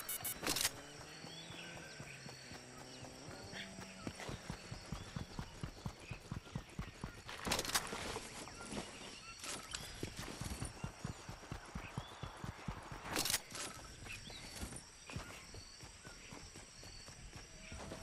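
Footsteps thud quickly on grass and dirt as a game character runs.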